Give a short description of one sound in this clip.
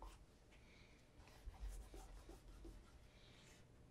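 A leather shoe is set down on a wooden table with a soft knock.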